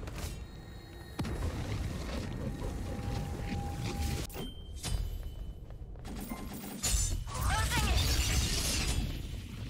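Magic spell effects whoosh and chime.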